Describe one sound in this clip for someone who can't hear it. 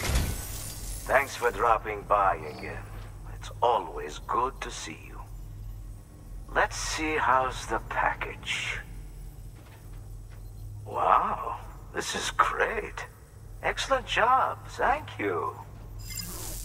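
An elderly man speaks warmly and cheerfully.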